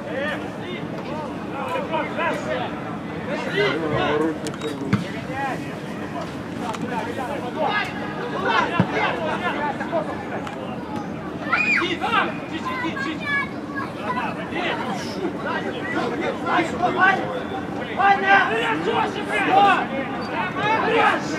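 Men shout to each other across an open pitch.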